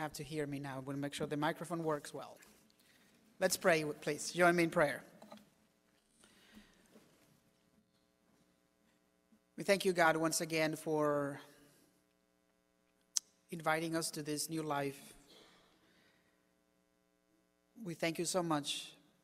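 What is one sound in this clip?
A man speaks calmly into a microphone in an echoing hall, pausing between phrases.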